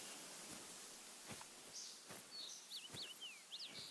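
Tall dry grass rustles and swishes as someone pushes through it.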